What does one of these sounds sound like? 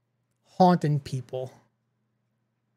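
A young man speaks briefly and with animation, close to a microphone.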